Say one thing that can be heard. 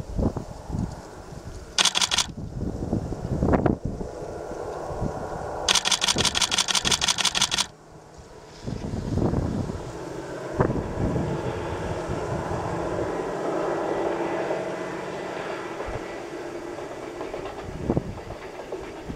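A freight train rumbles along its track far off.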